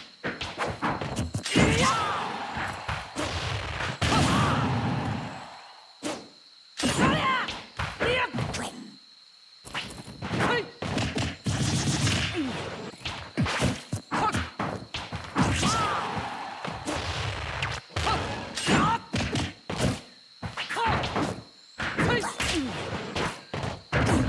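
Explosive impacts and whooshes burst out.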